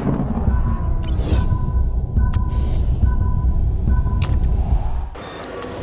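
Electronic beeps sound in a short sequence.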